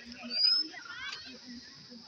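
Women and girls chat nearby outdoors.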